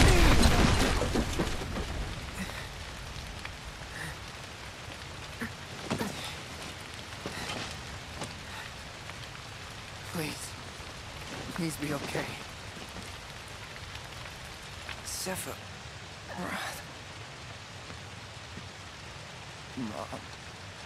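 Fire crackles and roars steadily.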